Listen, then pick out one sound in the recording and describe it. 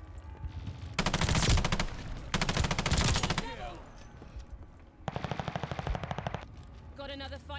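Gunfire bursts in quick rattling volleys.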